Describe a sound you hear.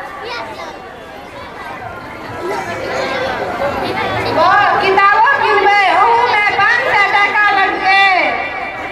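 A young woman sings loudly through a microphone and loudspeaker, her voice bending up and down.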